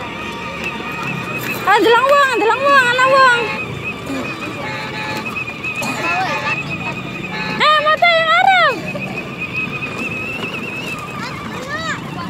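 A toy electric car's motor whines steadily.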